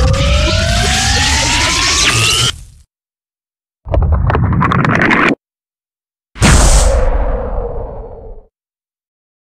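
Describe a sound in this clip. A giant movie monster lets out screeching roars.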